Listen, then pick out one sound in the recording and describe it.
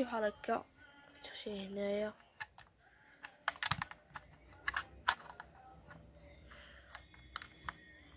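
A cable plug scrapes and clicks into a socket.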